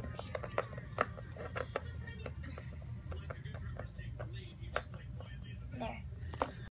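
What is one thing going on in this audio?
A small plastic toy taps and clicks against a hard surface.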